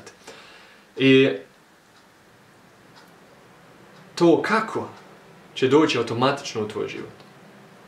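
A young man speaks close to a microphone, thoughtfully and with pauses.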